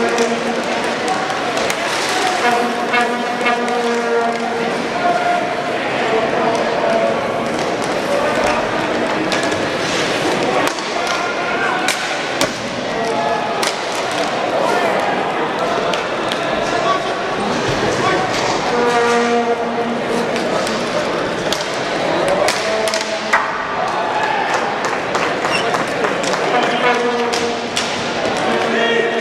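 Hockey sticks clack against a ball and against each other.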